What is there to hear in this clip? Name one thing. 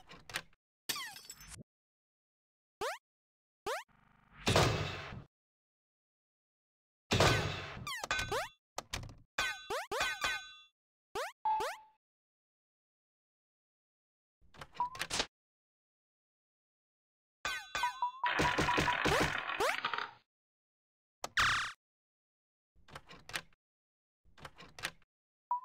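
Short electronic game blips and chimes sound in quick bursts.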